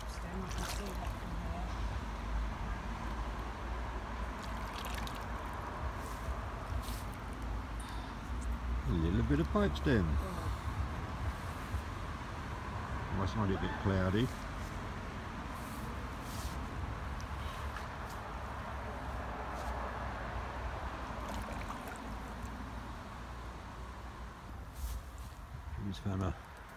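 A shallow stream gurgles and trickles steadily over stones.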